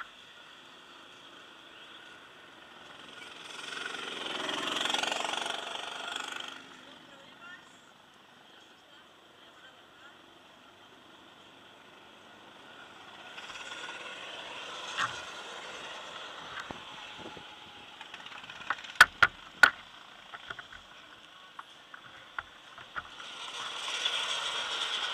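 A go-kart engine hums steadily close by.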